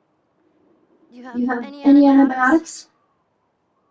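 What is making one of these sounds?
A young girl speaks tensely, close by.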